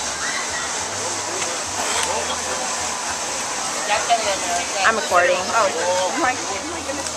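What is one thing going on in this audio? A crowd of people chatter outdoors in the background.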